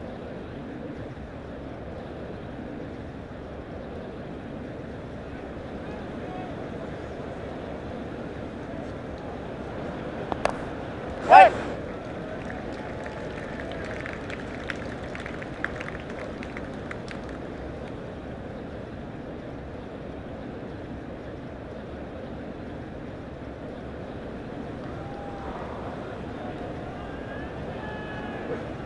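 A stadium crowd murmurs steadily in the background.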